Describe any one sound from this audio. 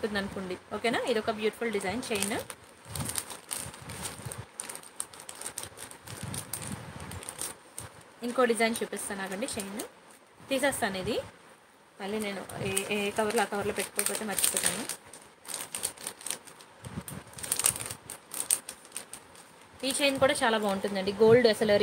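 A thin metal chain clinks softly as it is handled.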